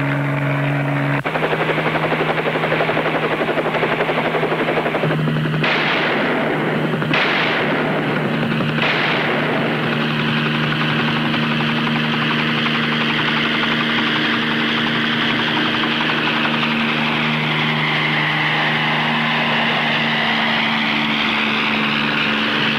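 A helicopter engine roars and its rotor thumps overhead.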